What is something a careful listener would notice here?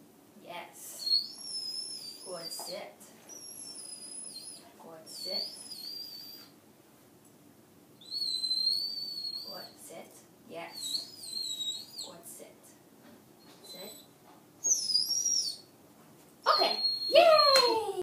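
A dog whines in high thin tones.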